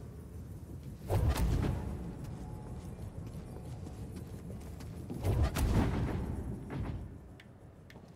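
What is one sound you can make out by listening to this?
A heavy metal ball rumbles loudly as it rolls past.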